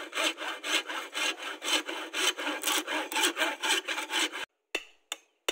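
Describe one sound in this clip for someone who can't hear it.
A hand saw cuts wood with quick rapid strokes.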